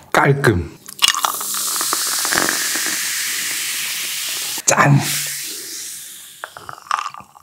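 A fizzy drink is poured into a glass and fizzes.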